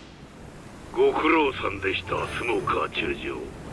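A man speaks into a headset microphone.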